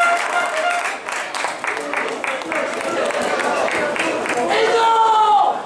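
Fans clap their hands in rhythm nearby.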